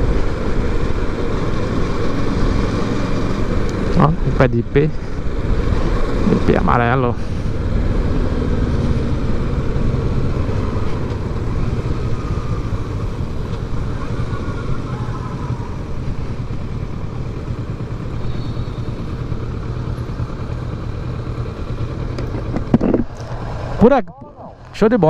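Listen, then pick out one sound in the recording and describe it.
Wind roars past a moving motorcycle.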